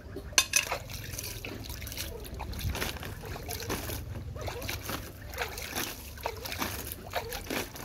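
Water splashes in a bucket as a hand stirs it.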